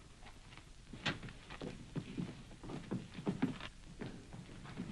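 Horses' hooves clatter on the ground.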